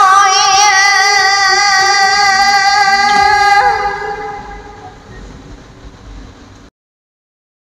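A woman sings a long held note over an online call, then the sound fades away.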